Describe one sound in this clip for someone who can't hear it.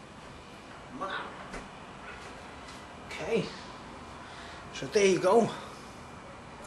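A middle-aged man speaks close to the microphone in short bursts.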